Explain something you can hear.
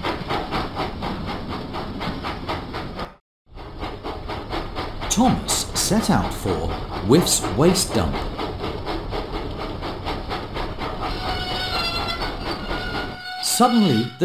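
A steam engine chuffs steadily along a track.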